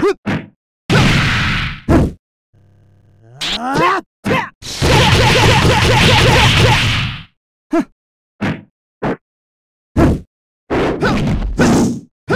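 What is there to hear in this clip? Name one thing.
Energy blasts burst and whoosh in quick, repeated bursts.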